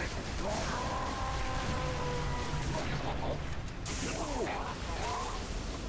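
Energy shields crackle and buzz.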